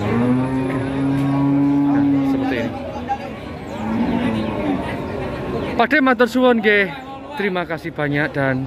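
A crowd of men chatters in the background outdoors.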